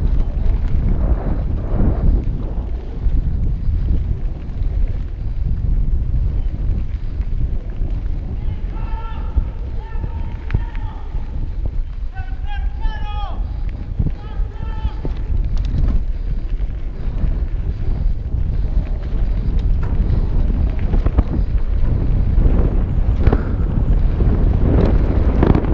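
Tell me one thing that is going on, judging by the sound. Bike tyres crunch and roll over a dirt trail.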